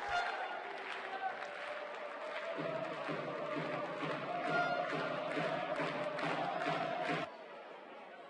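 A crowd cheers and claps in a large echoing hall.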